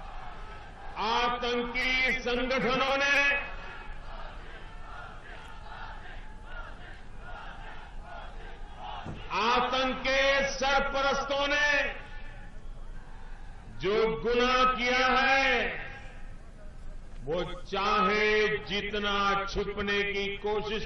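An elderly man speaks forcefully through a loudspeaker in loud bursts.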